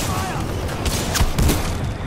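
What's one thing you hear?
A loud blast booms and rushes.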